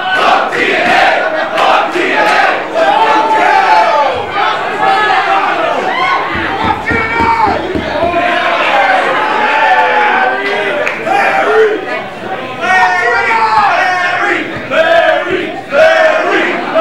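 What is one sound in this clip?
A man talks with animation into a microphone, heard through loudspeakers in a large echoing hall.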